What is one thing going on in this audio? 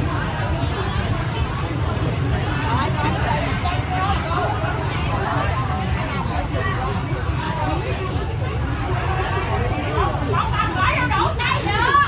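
A crowd of people chatter in a busy, bustling space.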